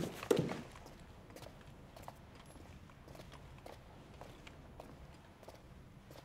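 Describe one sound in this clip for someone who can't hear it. Boots step on a hard floor.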